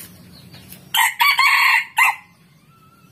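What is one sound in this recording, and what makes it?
A rooster crows loudly.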